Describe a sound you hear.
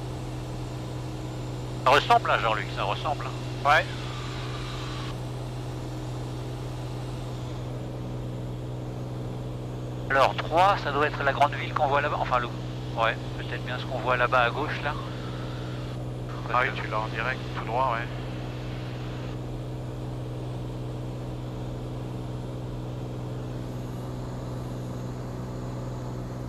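A small plane's engine drones steadily throughout.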